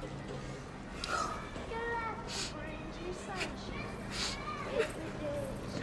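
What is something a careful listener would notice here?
A young woman sobs and breathes heavily during a hug.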